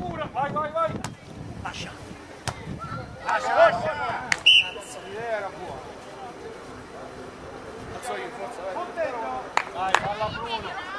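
A volleyball is struck by hands with sharp slaps.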